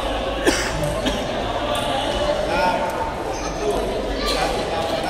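Table tennis balls click sharply on tables and paddles in a large echoing hall.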